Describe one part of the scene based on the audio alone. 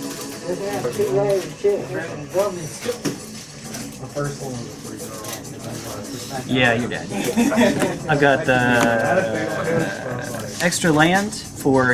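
Playing cards rustle and slide as they are handled.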